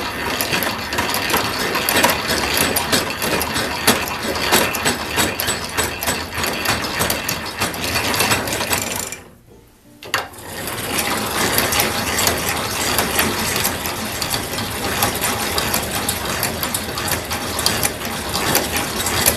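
A drill press whirs as its bit grinds into metal plate.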